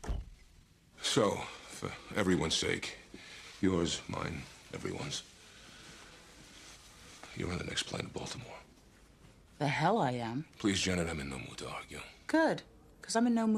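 A middle-aged man speaks in a low, serious voice close by.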